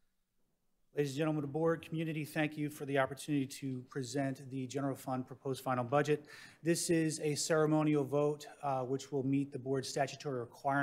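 A middle-aged man speaks steadily and clearly into a microphone.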